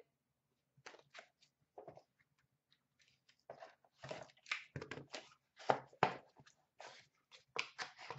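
Cardboard boxes rustle and tap as they are handled.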